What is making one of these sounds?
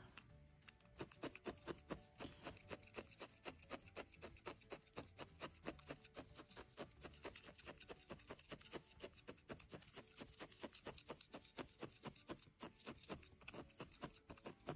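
A felting needle pokes rapidly into wool with soft, quick repeated taps.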